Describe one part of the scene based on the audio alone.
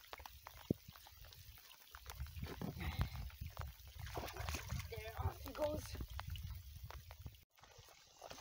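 Water splashes as hands move through it at the shore.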